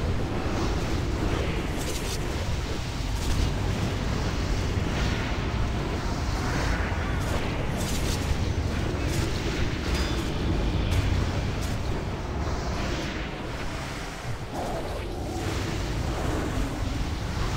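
Magic spells crackle and burst with sharp whooshes during a fierce battle.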